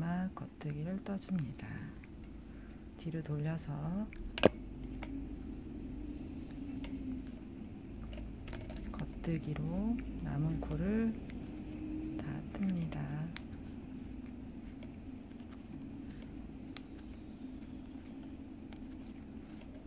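Wooden knitting needles click and tap softly.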